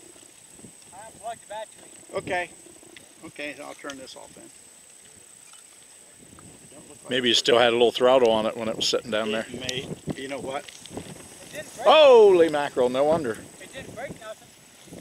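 An elderly man speaks calmly from nearby, outdoors.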